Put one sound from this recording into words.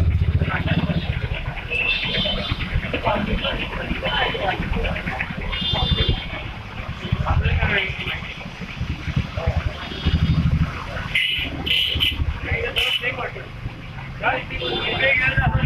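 A crowd of men shouts and chants in the street outdoors.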